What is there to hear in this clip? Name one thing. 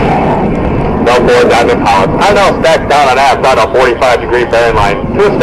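A man speaks through a loudspeaker with animation.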